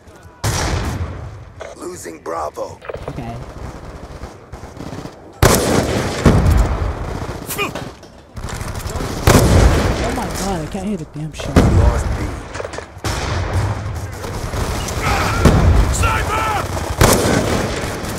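Sniper rifle shots boom loudly, one at a time.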